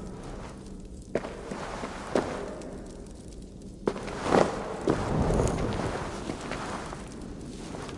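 A torch crackles and burns.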